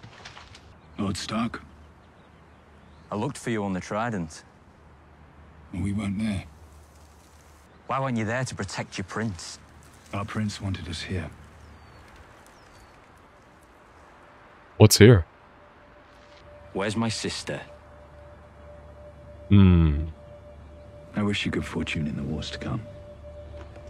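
A young man speaks into a close microphone in short bursts.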